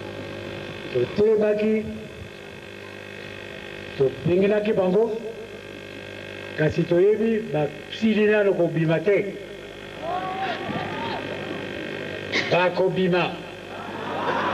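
An elderly man speaks through a microphone and loudspeakers in short bursts, with pauses.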